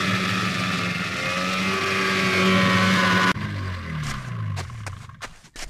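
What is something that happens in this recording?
A snowmobile engine roars steadily, then winds down.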